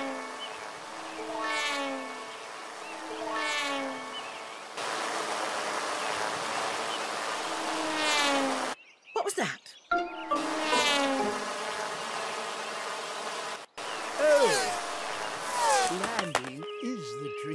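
A small propeller engine buzzes and whines, rising and falling in pitch as it swoops past.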